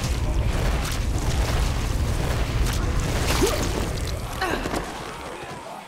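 A crowd of zombies groans and moans in a large echoing tunnel.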